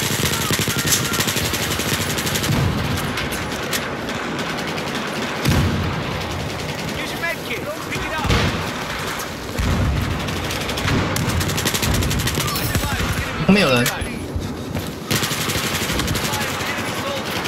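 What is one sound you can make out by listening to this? An assault rifle fires in bursts.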